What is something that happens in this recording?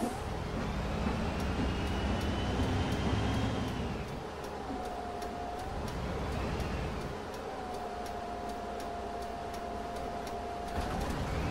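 A bus indicator ticks steadily.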